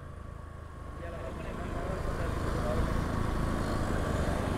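Another motorcycle engine grows louder close ahead.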